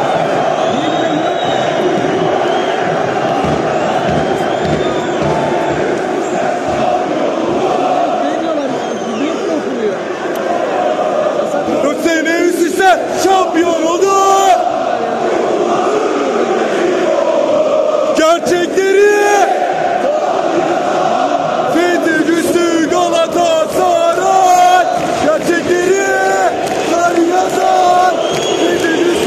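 A huge stadium crowd sings and chants loudly in unison.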